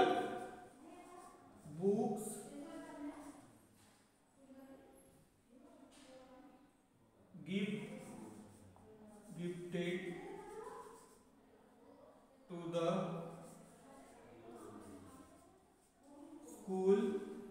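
A man speaks steadily, explaining, close by.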